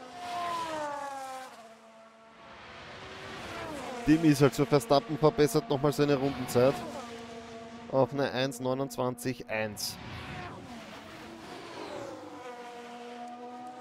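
A racing car engine whines, rising and falling in pitch as it shifts gears.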